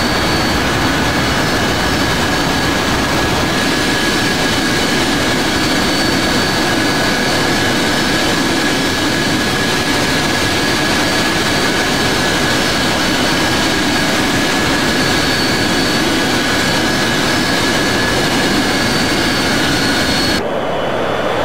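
Jet engines roar steadily up close with a high whine.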